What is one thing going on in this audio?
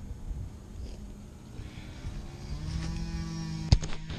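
Footsteps approach across grass.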